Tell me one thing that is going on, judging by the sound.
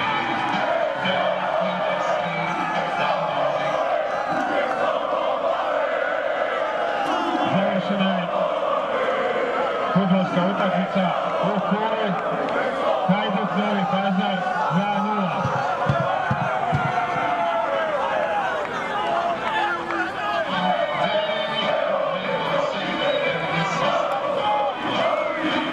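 A group of young men cheer and shout together outdoors.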